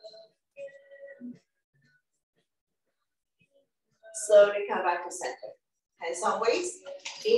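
A woman speaks calmly, giving instructions through a microphone.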